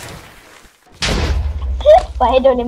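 A loud explosion booms with a deep rumble.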